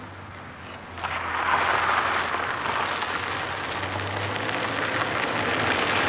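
Tyres roll on gravel and grow louder as a van approaches.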